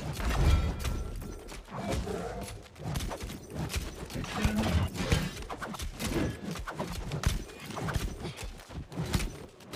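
Magic spells burst and whoosh.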